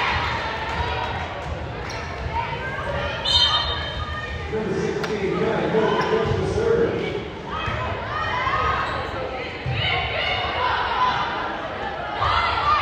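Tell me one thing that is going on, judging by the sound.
Young women playing volleyball call out to each other.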